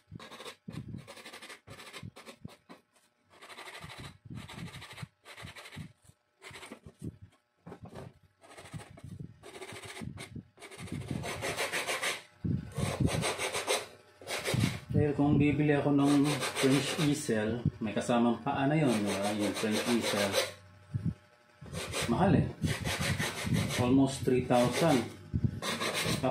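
A blade scrapes along wood in short, rasping strokes.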